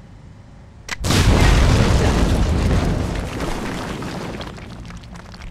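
A loud explosion booms and rumbles, echoing in a cave.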